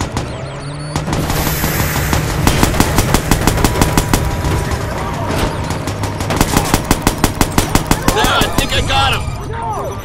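Rapid gunfire bursts out close by.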